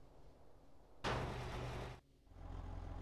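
A metal roller shutter rattles open.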